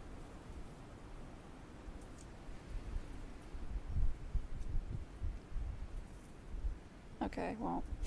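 A crow pecks at wooden sticks with light clicks.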